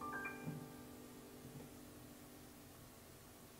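A guitar chord rings out and slowly fades.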